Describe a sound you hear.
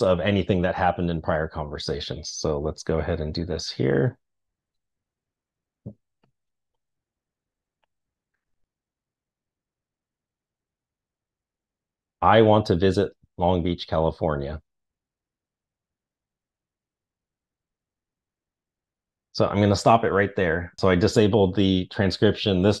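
A man talks calmly into a microphone, heard as if on an online call.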